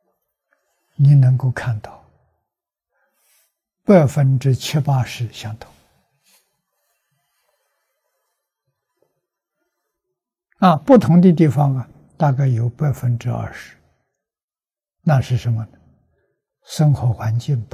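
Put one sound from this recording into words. An elderly man speaks calmly and slowly in short phrases, close to a microphone.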